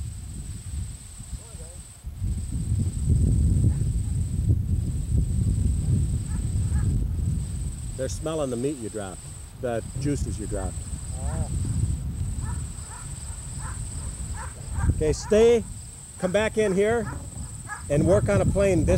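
Wind rumbles across the microphone outdoors.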